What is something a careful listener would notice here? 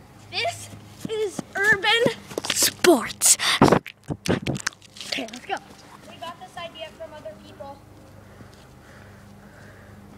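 A young boy's footsteps run across grass.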